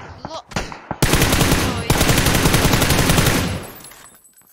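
A rifle fires in fast, loud bursts indoors.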